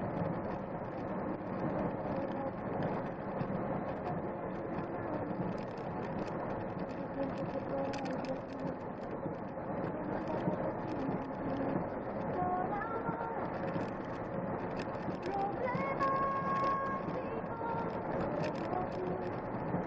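A car engine hums steadily as tyres roll along a road.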